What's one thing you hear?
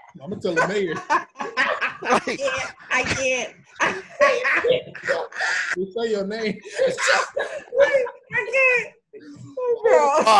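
Several men laugh heartily over an online call.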